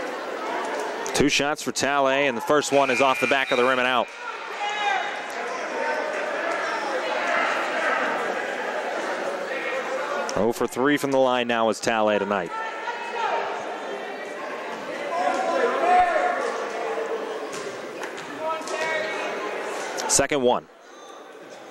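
A crowd of spectators murmurs and chatters in a large echoing gym.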